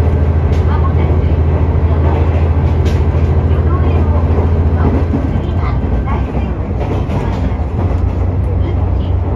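A train rumbles steadily along the tracks with a low hum.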